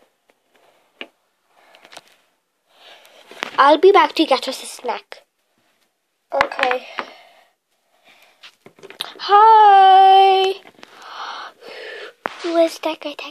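Small plastic toys tap and knock against a wooden shelf.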